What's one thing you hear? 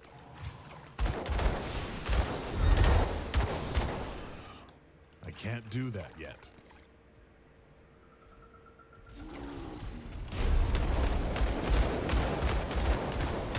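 Magic spells blast and crackle in rapid bursts during a fight.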